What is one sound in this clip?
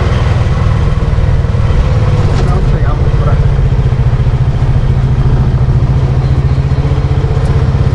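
A small engine putters steadily up close as a vehicle rolls along a street.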